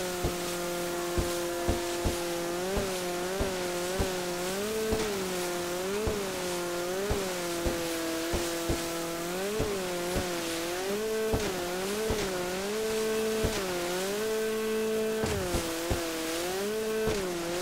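A jet ski engine drones and revs up and down.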